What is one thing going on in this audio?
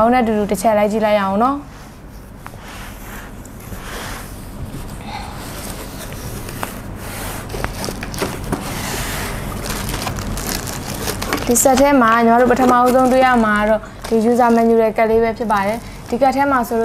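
A young woman speaks clearly and brightly into a nearby microphone.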